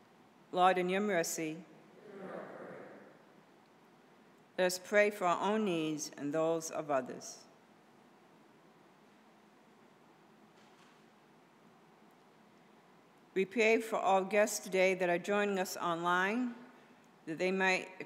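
A woman reads out calmly through a microphone in an echoing room, with pauses.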